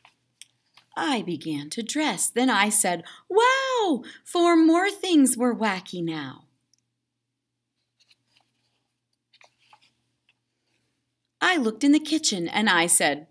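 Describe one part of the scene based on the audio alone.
A woman reads aloud with lively expression, close to the microphone.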